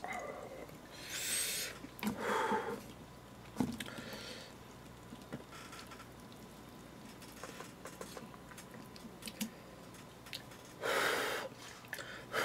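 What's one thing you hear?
A young man slurps noodles loudly, close by.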